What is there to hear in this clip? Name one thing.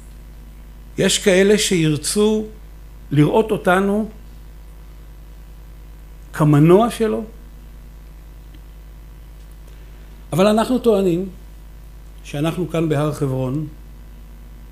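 A man lectures calmly into a microphone, pausing between phrases.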